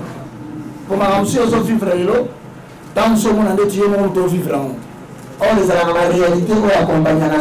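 A man speaks loudly and with passion through a microphone.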